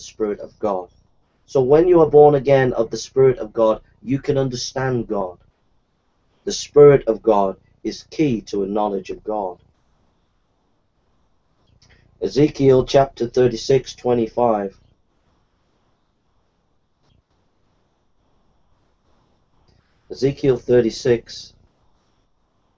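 A middle-aged man speaks with animation and reads aloud in bursts, close to a microphone.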